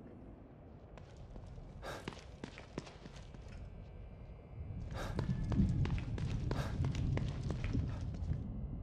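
Footsteps hurry across a hard tiled floor.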